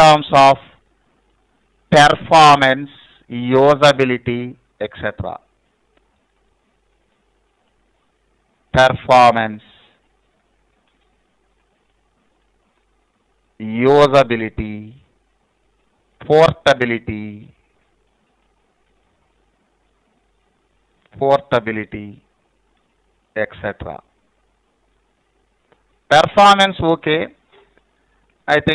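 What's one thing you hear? A man speaks calmly and slowly into a close microphone, pausing often.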